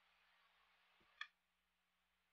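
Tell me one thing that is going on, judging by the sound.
A game stone clicks onto a wooden board.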